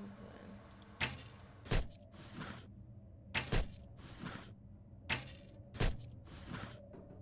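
Sharp clicks go off one after another.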